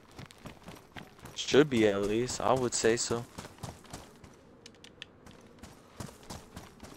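Footsteps run steadily over gravel and grass.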